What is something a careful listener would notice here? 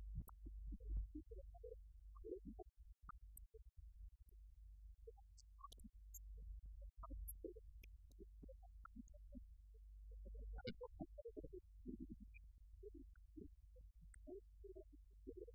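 An adult speaks calmly, heard from across a room.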